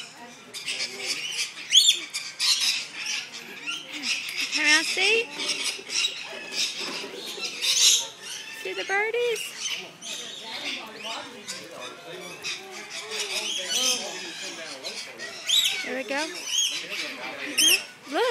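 A crowd of adults and children chatter nearby.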